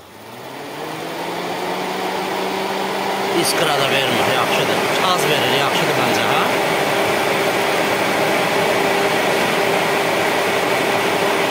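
An electric fan motor hums steadily as it spins up.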